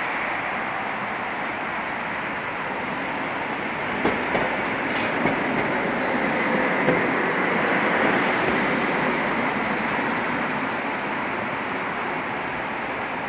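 A tram rumbles past along rails, swelling as it comes close and easing as it goes.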